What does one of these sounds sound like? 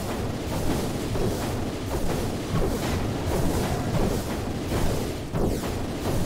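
Magic blasts and combat sound effects crackle and whoosh.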